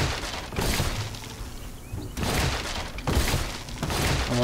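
Wooden blocks crack and break in a game.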